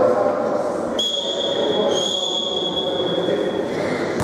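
A referee blows a whistle in short blasts.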